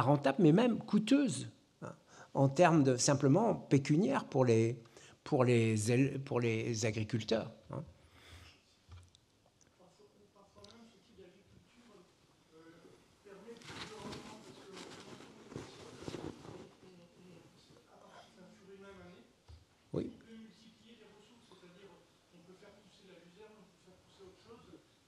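An elderly man speaks calmly into a microphone in a large, echoing hall.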